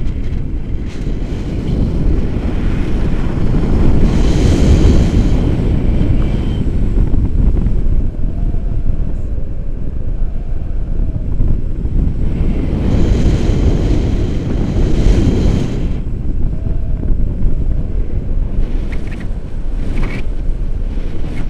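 A man talks happily close by, his voice partly covered by the wind.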